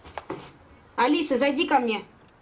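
A young woman speaks nearby, sharply and with feeling.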